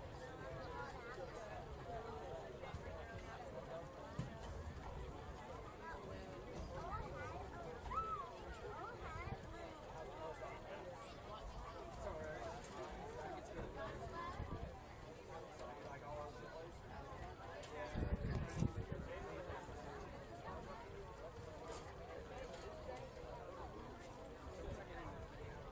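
A small crowd chatters faintly in the distance outdoors.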